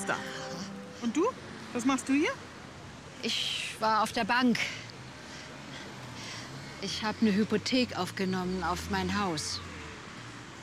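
An elderly woman speaks cheerfully, close by.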